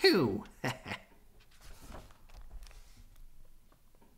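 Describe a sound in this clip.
A page of a book turns with a soft rustle.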